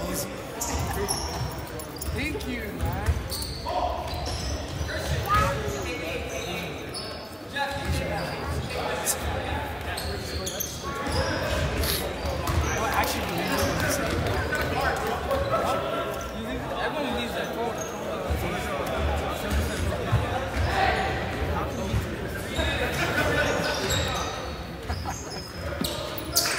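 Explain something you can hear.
Sneakers squeak sharply on a gym floor, echoing in a large hall.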